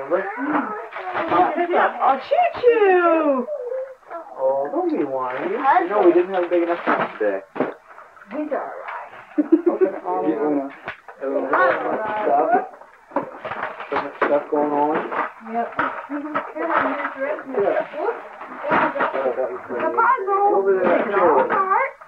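A woman talks warmly and with animation close by.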